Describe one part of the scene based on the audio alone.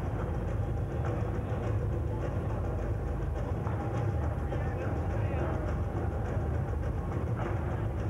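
Loud dance music with a steady, thumping beat plays over loudspeakers.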